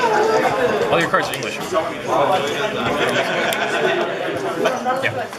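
Playing cards tap softly onto a table.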